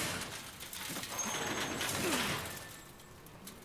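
A metal gate rattles and scrapes as it is pushed open.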